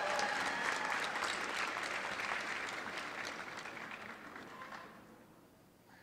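Applause fills a large hall and then fades away.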